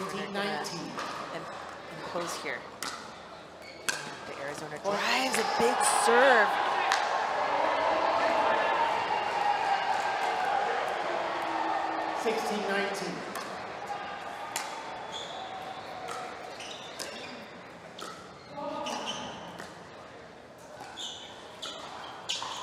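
Paddles pop sharply against a plastic ball, back and forth.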